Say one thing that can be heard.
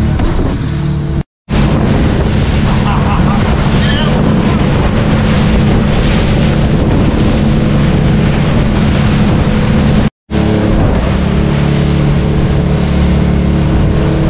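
A boat engine roars steadily at speed.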